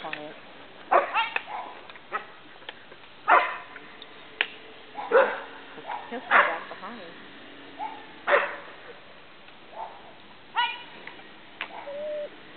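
Sheep bleat loudly now and then.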